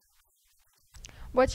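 A young woman speaks into a microphone close by.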